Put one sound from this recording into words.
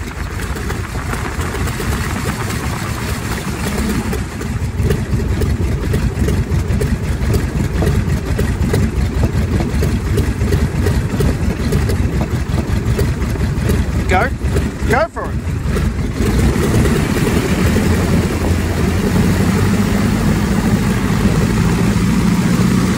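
Wind rushes past an open cockpit.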